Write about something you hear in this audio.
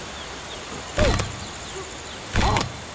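An ape grunts and hoots loudly close by.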